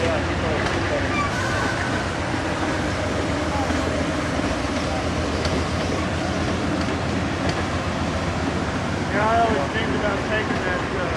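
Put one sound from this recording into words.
A passenger train rolls past with a steady rumble and clatter of wheels on rails.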